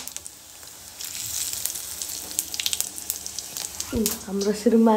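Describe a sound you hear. Spices sizzle and crackle in hot oil in a wok.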